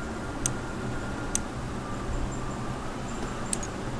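Short, sharp menu clicks sound as a selection changes.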